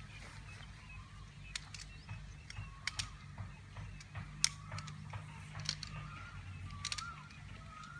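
Tent poles click and clack together.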